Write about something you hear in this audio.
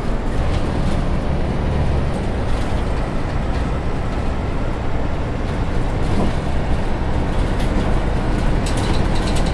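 A city bus drives along a road with a steady low engine rumble.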